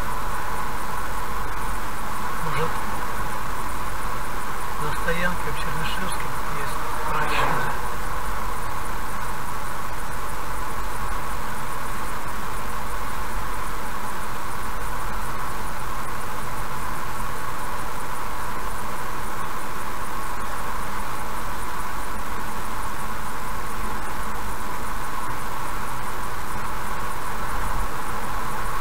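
A car's engine and tyres hum steadily on a highway.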